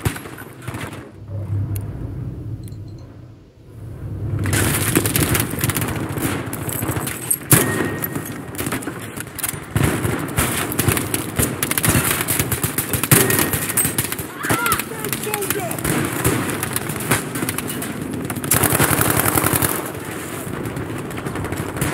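Explosions boom and rumble nearby.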